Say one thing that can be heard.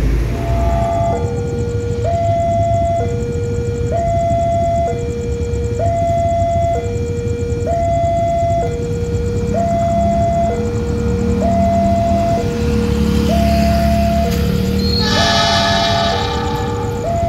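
A level crossing warning bell rings in two alternating tones.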